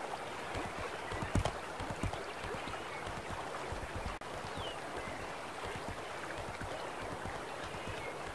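A horse's hooves clatter at a gallop on stone.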